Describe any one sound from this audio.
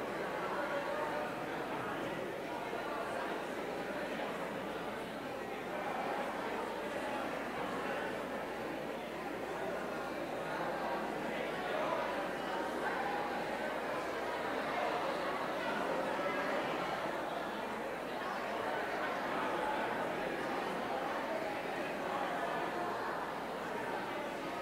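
A crowd of men and women chatter and greet each other in a large echoing room.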